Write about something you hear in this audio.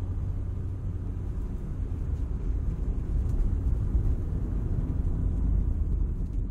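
A car engine hums steadily with a low rumble while driving.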